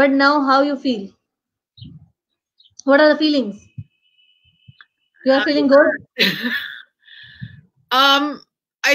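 A young woman sings in a high voice over an online call.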